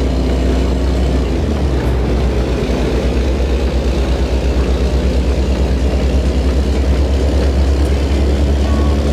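Tyres roll along a road with a low hum.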